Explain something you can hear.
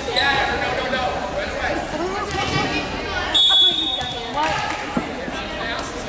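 A crowd of men and women chatters and calls out in a large echoing gym.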